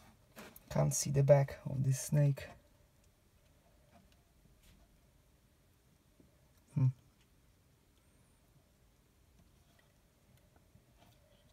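Small scissors snip through a leathery eggshell.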